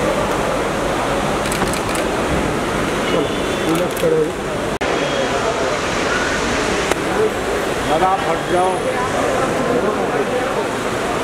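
A crowd chatters all around in a busy, echoing space.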